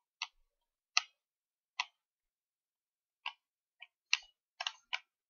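Short electronic game blips sound in quick bursts.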